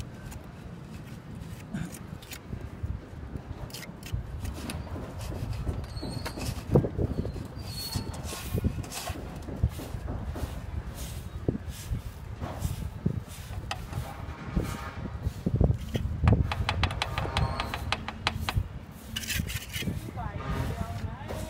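A trowel taps against cement.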